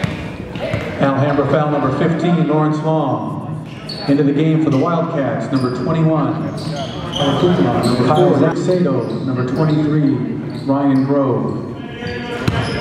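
A crowd of young people shouts and chants, echoing in a large gym.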